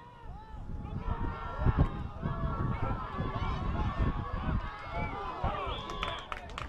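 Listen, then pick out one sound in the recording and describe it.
A crowd cheers loudly from the sidelines.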